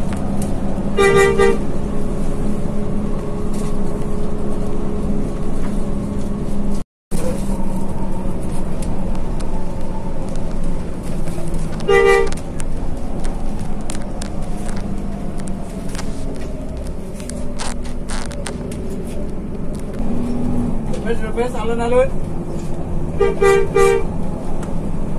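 A bus horn honks in short bursts.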